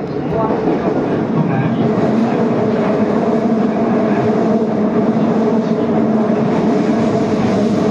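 Train wheels squeal on a curve.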